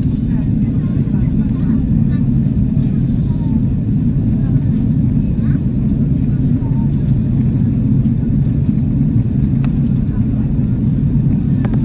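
A jet airliner's engines roar in a low, steady rumble inside the cabin.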